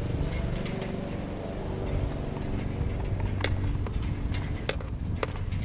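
Wheels roll over asphalt with a steady low rumble.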